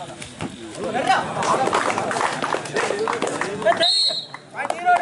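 A crowd cheers loudly as a point is scored.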